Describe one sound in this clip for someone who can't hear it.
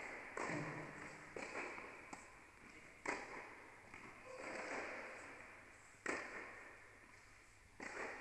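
A tennis ball is struck with a racket, echoing through a large indoor hall.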